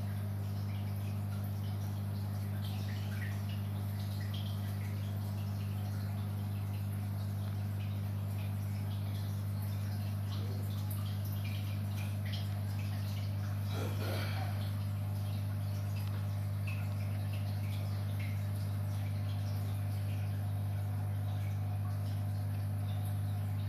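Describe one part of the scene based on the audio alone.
Air bubbles fizz and gurgle steadily in water.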